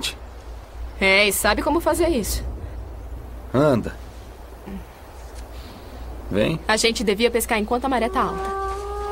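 A young woman talks softly up close.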